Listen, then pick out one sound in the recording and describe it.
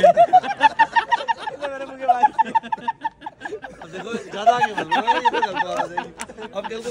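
Young men laugh loudly and heartily up close.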